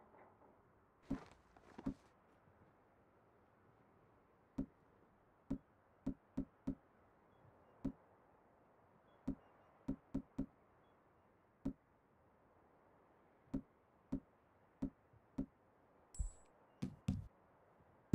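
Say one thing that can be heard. Short soft clicks tick in an uneven series.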